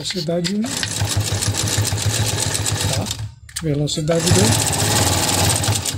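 A sewing machine stitches with a rapid, steady whirring hum.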